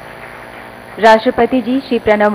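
A young woman speaks clearly into a microphone over a loudspeaker.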